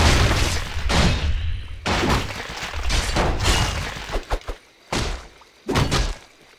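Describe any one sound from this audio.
Weapons clash and clang in a fight.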